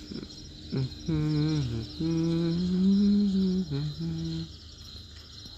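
A large animal gives a long, wavering call.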